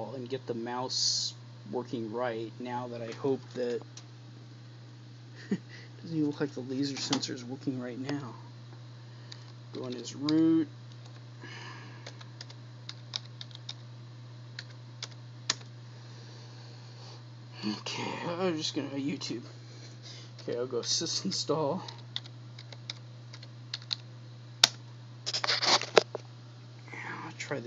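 A computer hums steadily.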